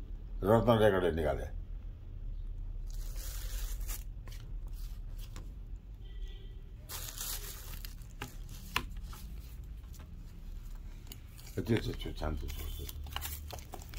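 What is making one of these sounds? Cardboard record sleeves rustle and scrape as they are handled.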